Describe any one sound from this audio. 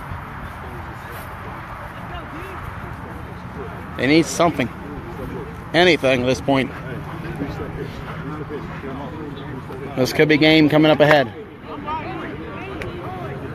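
A crowd of young people chatters in the background outdoors.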